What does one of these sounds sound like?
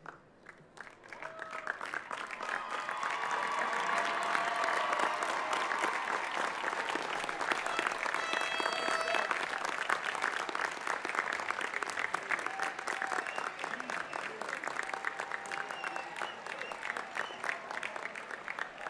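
A large outdoor crowd claps and cheers loudly.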